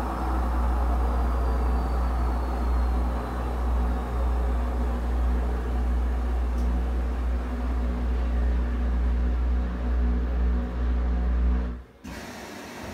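A small motor whirs with a steady low hum, then cuts out abruptly.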